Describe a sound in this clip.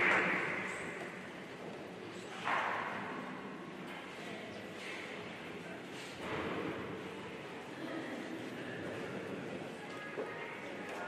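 A crowd murmurs quietly in a big echoing hall.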